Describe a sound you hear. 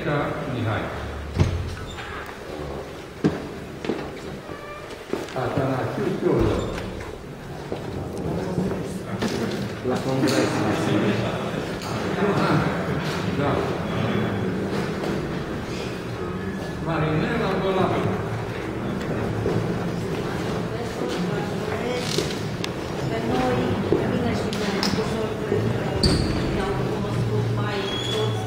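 Several men and women talk over one another in a room with some echo.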